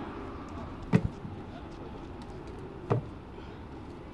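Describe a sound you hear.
Rubber tyres thud onto dusty ground.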